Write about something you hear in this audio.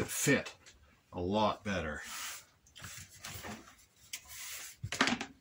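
A leather strap slides and rustles across a cutting mat.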